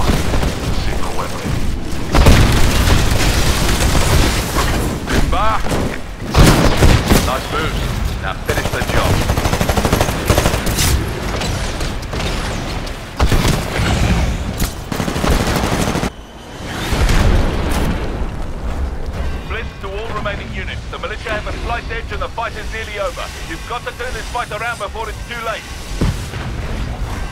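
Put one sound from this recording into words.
A heavy automatic cannon fires in bursts.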